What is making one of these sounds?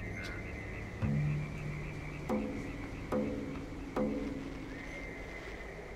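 Short pitched game sounds ring out several times as a figure climbs a rope.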